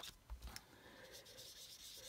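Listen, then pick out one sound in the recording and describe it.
Paper slides and rustles on a cutting mat.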